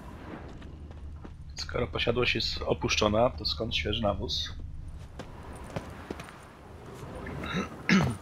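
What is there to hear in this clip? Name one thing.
Footsteps run over grass and stone.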